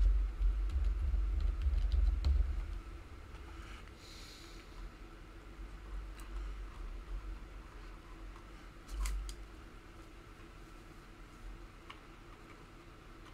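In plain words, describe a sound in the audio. Small plastic model parts click softly as fingers press them together.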